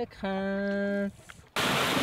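A paddle splashes in calm water.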